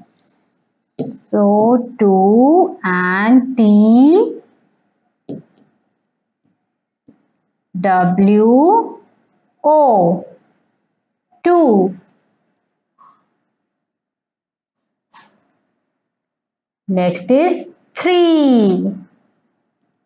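A young girl speaks nearby in a clear, sing-song teaching voice, in short bursts with pauses.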